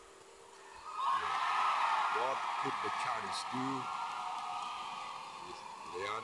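A crowd cheers and applauds loudly in a large hall.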